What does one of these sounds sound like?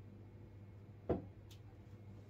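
A glass is set down on a wooden counter with a knock.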